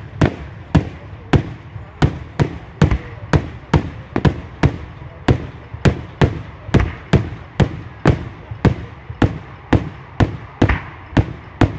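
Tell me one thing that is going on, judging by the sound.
Firework shells burst in rapid succession outdoors, each loud bang echoing away.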